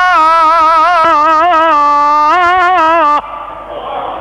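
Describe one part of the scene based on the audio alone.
An elderly man chants in a long, wavering melodic voice through a loudspeaker.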